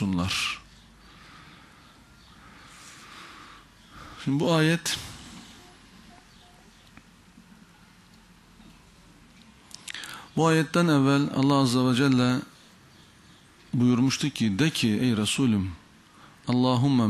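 A man speaks slowly and deliberately into a microphone, with long pauses.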